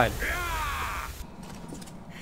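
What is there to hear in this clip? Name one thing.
A man shouts harshly up close.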